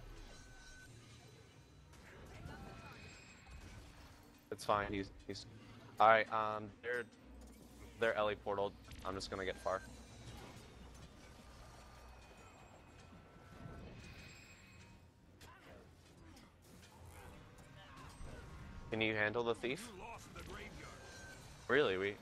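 Magical spell effects whoosh and crackle in a fight.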